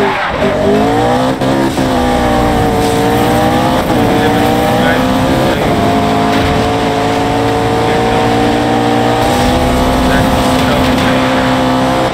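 A sports car engine roars, revving up and shifting through the gears.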